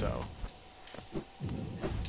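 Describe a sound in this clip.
A blade swishes through the air.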